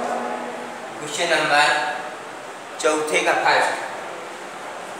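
A man speaks in a raised, teacher-like voice close by.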